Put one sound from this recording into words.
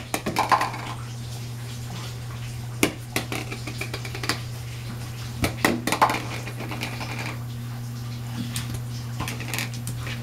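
A baby crawls, palms patting on a wooden floor.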